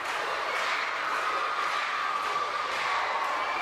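A large crowd screams and cheers in an arena.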